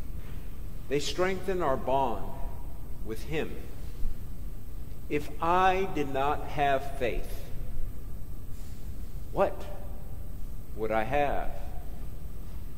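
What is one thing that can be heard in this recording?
A middle-aged man speaks slowly and calmly through a microphone, with pauses, in an echoing hall.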